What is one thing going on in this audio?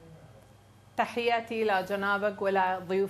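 A woman speaks with animation over a remote link.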